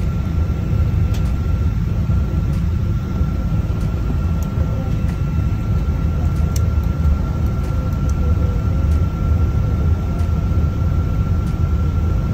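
An airliner rumbles and rattles as it rolls down a runway.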